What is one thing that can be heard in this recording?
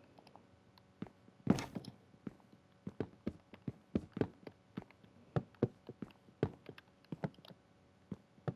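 Wooden blocks are placed one after another with short, soft knocks.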